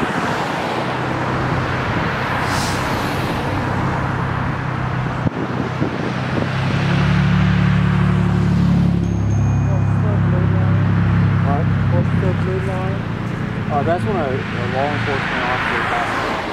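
A truck engine idles with a steady low hum.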